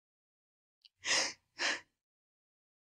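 A woman breathes out heavily twice.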